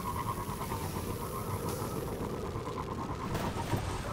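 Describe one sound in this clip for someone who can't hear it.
A jetpack hisses steadily.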